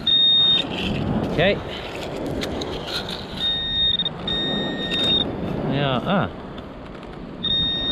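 Gravel crunches and scrapes under a hand.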